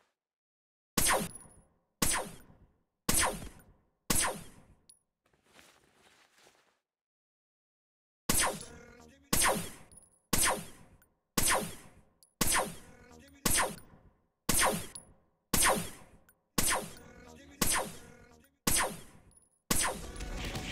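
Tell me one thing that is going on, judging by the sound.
A heavy gun fires loud blasts, one about every second.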